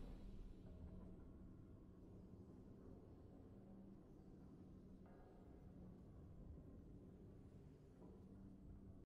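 Triumphant game music plays softly.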